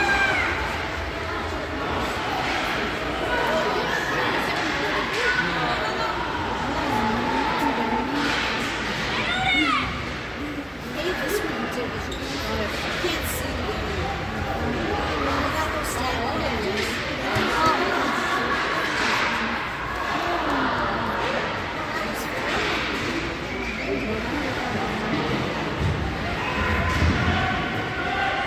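A crowd of spectators chatters and calls out in a large echoing arena.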